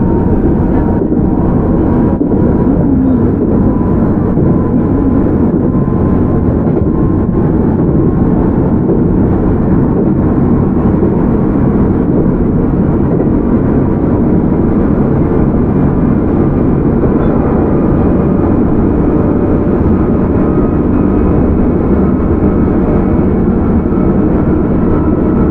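A train rumbles along the tracks with a steady low roar.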